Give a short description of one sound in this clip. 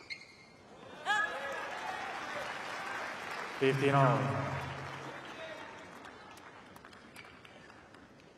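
A crowd cheers and applauds loudly, then slowly fades.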